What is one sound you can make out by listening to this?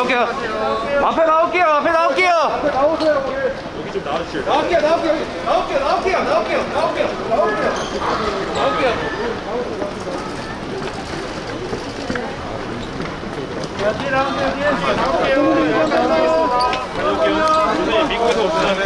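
A crowd of young women shout and scream excitedly nearby.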